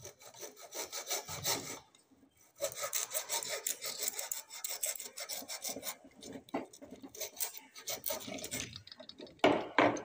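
A metal rod scrapes and clicks against a metal plate.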